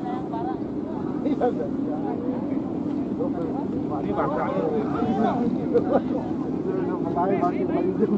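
A crowd of young men chatter and call out outdoors.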